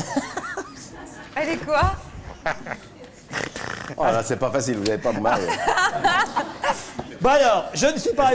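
A man reads out with amusement into a microphone.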